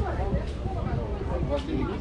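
Two men talk with each other nearby.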